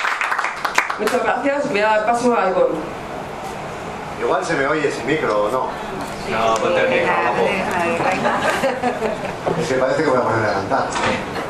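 A young man speaks into a microphone over a loudspeaker.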